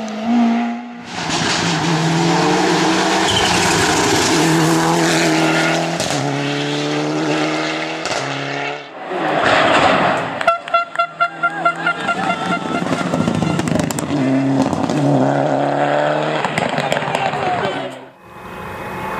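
A turbocharged four-cylinder rally car accelerates at full throttle and shifts gears.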